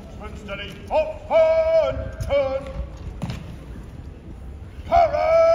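A man shouts a loud, drawn-out command.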